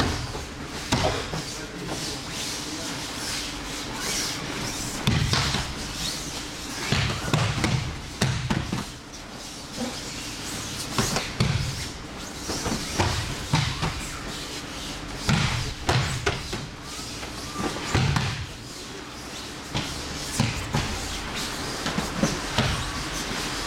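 Bodies thud onto a padded mat again and again.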